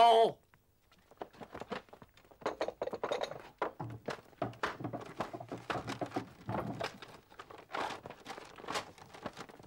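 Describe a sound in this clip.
Books and wooden boxes thump and clatter as men rummage through them.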